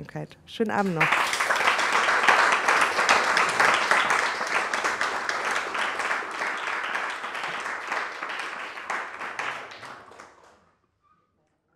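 An audience applauds loudly, then the applause fades away.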